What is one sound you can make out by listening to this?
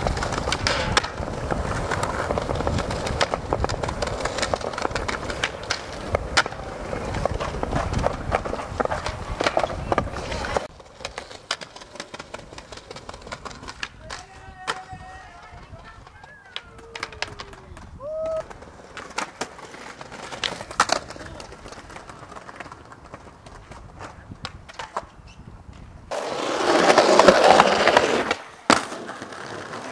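A skateboard clacks and snaps against the ground during tricks.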